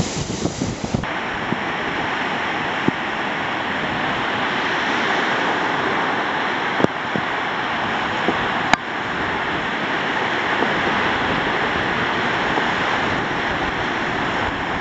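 Surf rushes steadily onto a beach.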